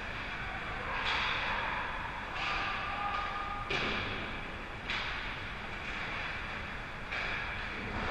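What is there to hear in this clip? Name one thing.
A hockey puck clacks off sticks.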